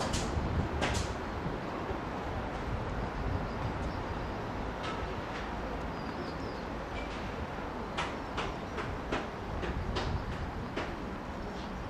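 A tennis ball pops sharply off rackets and a hard court.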